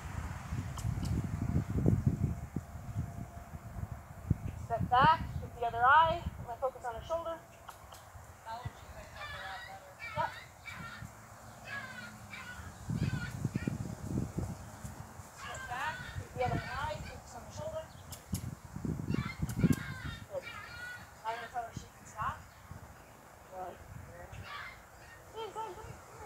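Hooves thud softly on grass.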